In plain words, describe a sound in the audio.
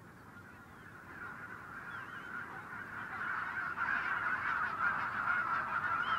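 A large flock of geese calls as it takes flight.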